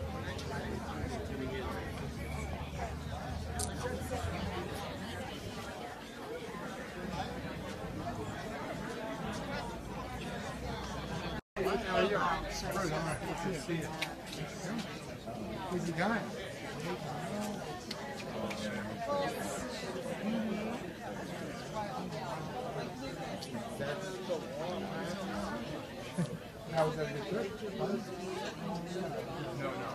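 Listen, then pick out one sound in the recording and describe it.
A crowd of adult men and women chatter and talk all around outdoors.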